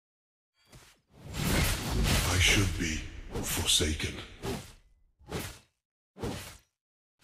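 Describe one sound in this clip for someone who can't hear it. Magical blasts and impacts crackle in a fast fight.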